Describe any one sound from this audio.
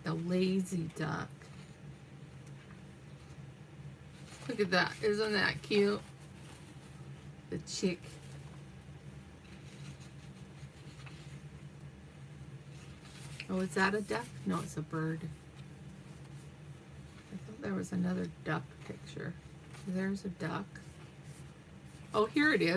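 Paper pages of a book rustle as they are turned.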